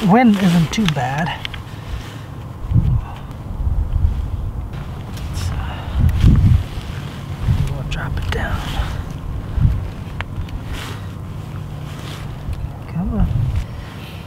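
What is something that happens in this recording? Wind blows outdoors with low rumbling gusts.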